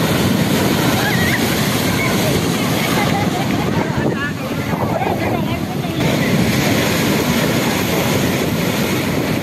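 Waves crash loudly against a sea wall and splash.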